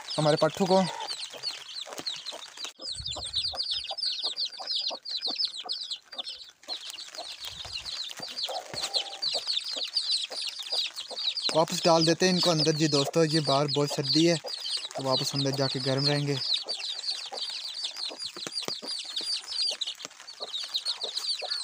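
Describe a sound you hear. Chicks peep rapidly and continuously.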